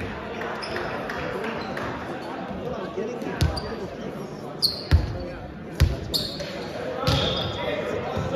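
Many young people chatter in the background.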